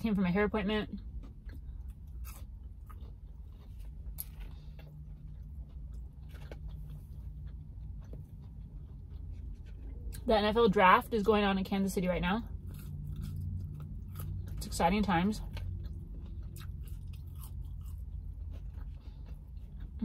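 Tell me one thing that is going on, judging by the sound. A young woman chews and crunches fries.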